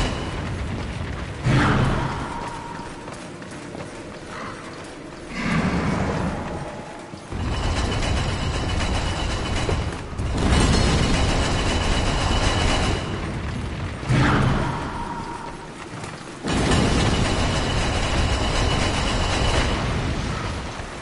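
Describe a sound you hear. A heavy stone block grinds and scrapes across a stone floor.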